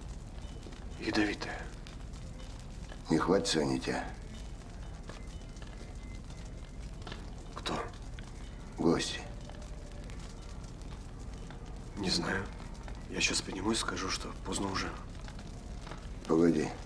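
A younger man speaks quietly and calmly, close by.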